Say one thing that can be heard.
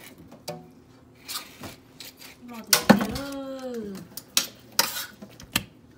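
Wet fish squelch and slap as a hand moves them.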